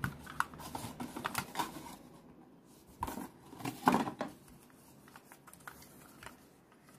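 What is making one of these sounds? Plastic parts click and rattle.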